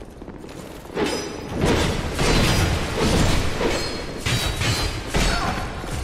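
Metal weapons clash and strike.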